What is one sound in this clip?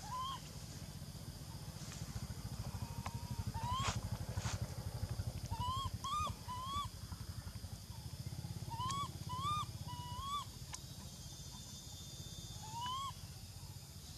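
A baby monkey squeaks in short, high, rising cries.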